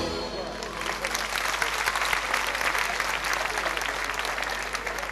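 An audience applauds loudly outdoors.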